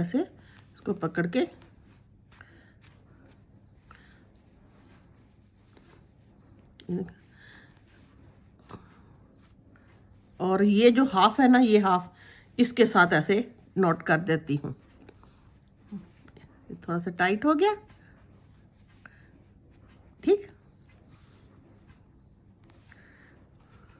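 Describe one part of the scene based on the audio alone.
Yarn rustles softly as it is pulled through knitted fabric.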